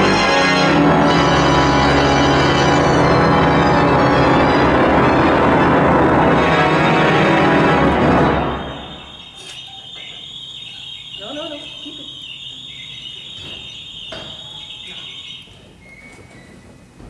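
A pipe organ plays, loud and full at first, then soft and high, ringing in a large echoing hall.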